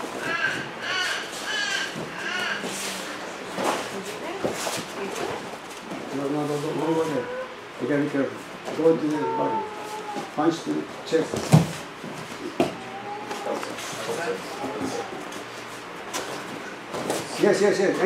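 Men's hands clap and slap as they strike and block.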